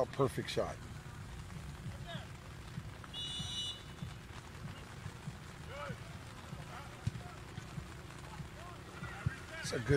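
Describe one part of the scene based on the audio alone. Young men shout to each other outdoors in the distance.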